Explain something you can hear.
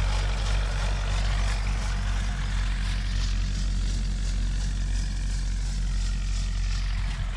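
Footsteps crunch on dry, cracked soil.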